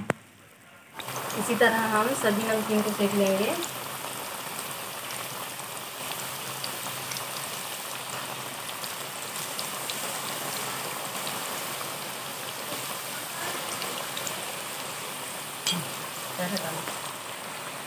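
Hot oil sizzles and crackles loudly in a pan.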